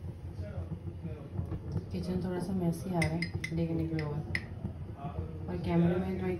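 A metal spoon clinks and scrapes against glass mugs.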